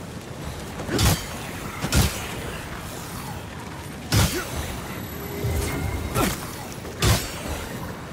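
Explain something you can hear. Sword blows strike with sharp metallic hits.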